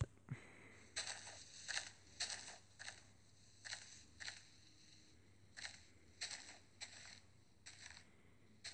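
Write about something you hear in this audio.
Leaves crunch in short, repeated bursts as they are broken.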